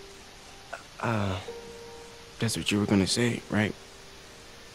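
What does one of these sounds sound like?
A young man replies calmly, close by.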